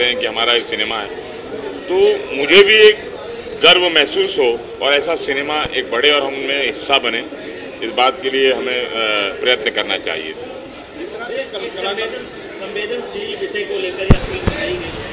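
A middle-aged man speaks calmly into microphones close by.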